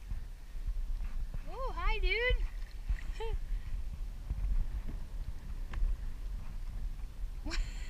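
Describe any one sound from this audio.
A paddle dips and splashes in the water.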